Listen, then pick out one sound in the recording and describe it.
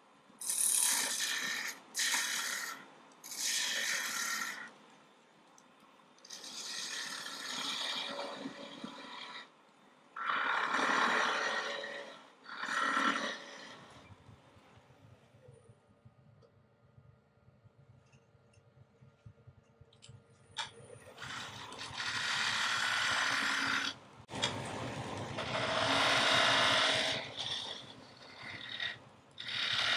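A lathe chisel scrapes and hisses against spinning wood in bursts.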